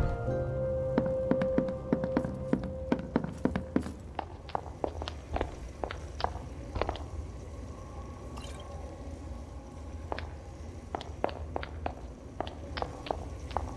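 Footsteps thud steadily on wooden planks and stone.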